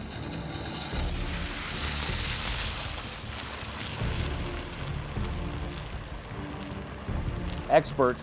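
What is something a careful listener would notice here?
A large fire flares up with a loud whoosh and roars.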